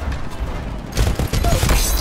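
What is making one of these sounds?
Heavy gunfire bursts in rapid shots.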